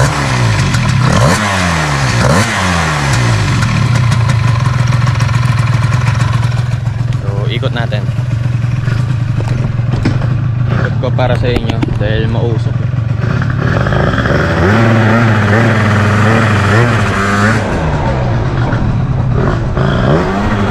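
A motorcycle engine revs up and down close by, then idles with a steady low rumble.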